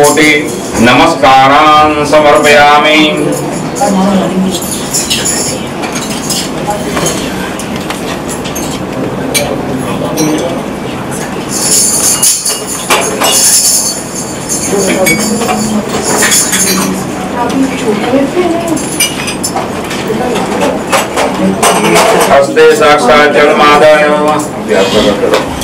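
A group of people sings a devotional hymn together.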